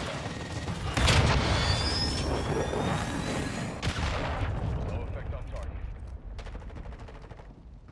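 A missile roars down and explodes with a deep boom.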